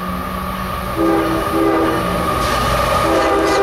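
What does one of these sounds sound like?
A train horn sounds loudly.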